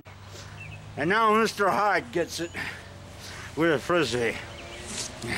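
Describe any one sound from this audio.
An older man laughs loudly, close by.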